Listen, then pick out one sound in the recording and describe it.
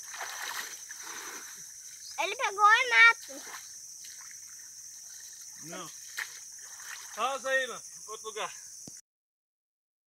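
Water sloshes as a man wades through a shallow stream.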